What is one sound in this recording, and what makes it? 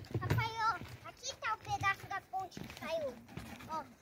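Footsteps thud on wooden bridge planks.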